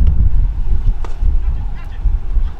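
A cricket bat knocks a ball.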